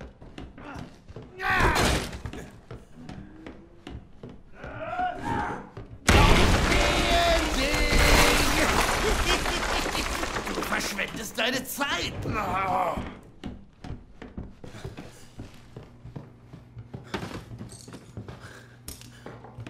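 Footsteps creak across a wooden floor.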